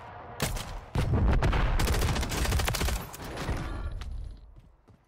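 Gunfire bursts loudly in rapid shots.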